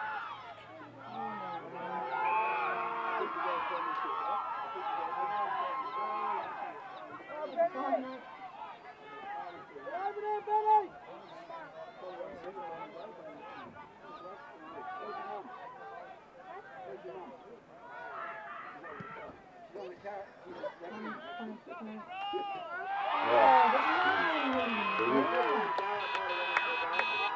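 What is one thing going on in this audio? Players and spectators shout and call out in the distance.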